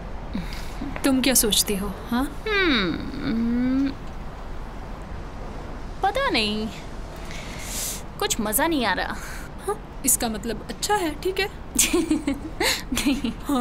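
A young woman speaks calmly and warmly up close.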